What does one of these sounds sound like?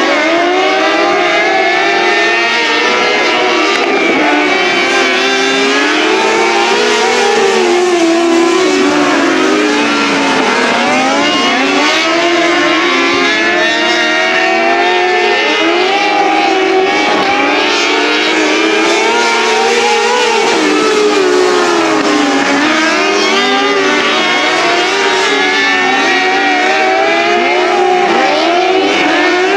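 Several race car engines roar loudly, rising and falling in pitch.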